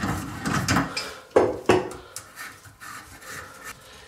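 A metal tool clicks and scrapes against a pipe.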